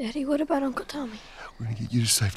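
A young girl asks a question in a shaky voice.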